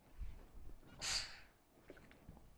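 An iron hisses out a burst of steam.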